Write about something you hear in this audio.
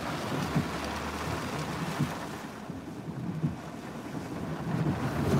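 A windshield wiper thumps across the glass.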